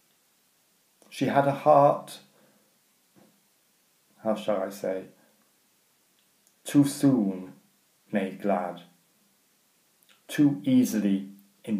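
A middle-aged man speaks calmly and close up, in short phrases with pauses.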